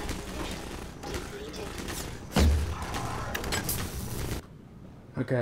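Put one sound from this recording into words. Gunfire rattles loudly in rapid bursts.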